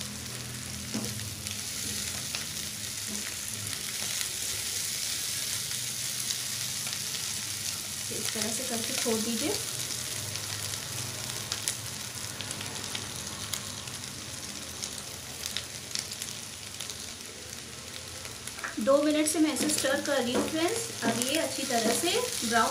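A spatula scrapes and stirs in a pan.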